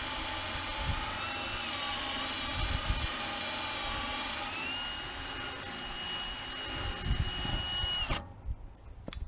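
A power drill whines steadily as it bores into metal, then stops abruptly.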